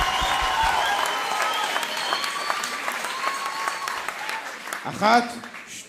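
A crowd cheers and applauds in a large hall.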